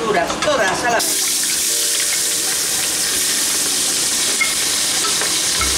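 Vegetables sizzle as they are tipped into hot oil.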